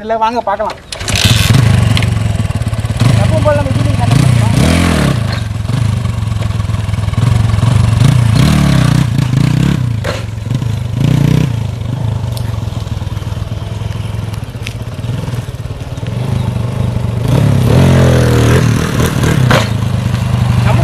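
A motorcycle engine idles with a steady rumble.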